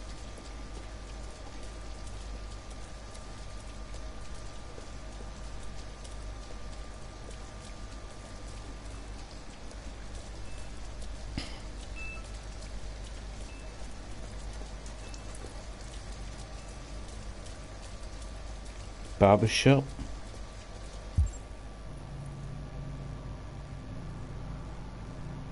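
Footsteps tap on wet pavement.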